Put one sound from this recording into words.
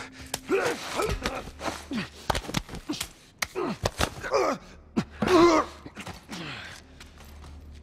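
A man grunts and groans while struggling with another man.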